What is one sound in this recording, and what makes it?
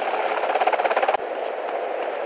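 A quad bike engine roars loudly.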